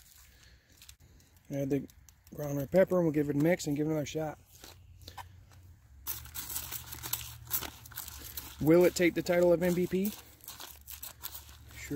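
A foil food packet crinkles and rustles in a hand.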